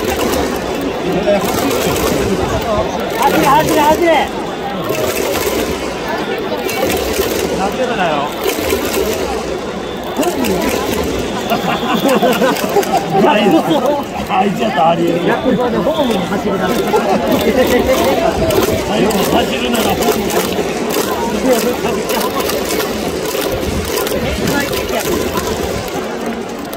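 A large stadium crowd chants and cheers loudly outdoors.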